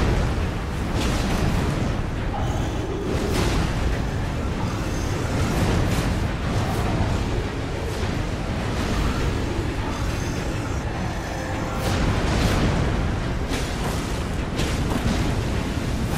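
Heavy weapons clash and strike with sharp impacts.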